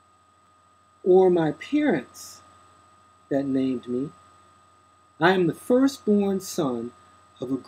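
A man reads aloud close to the microphone, in short phrases with pauses.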